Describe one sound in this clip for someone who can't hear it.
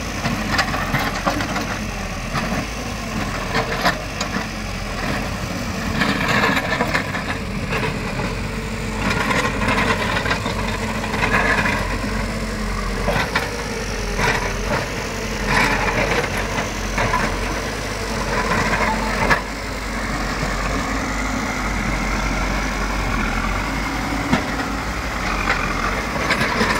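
A backhoe bucket scrapes and knocks against the dirt.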